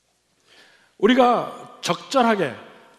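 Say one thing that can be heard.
An older man speaks with emphasis into a microphone.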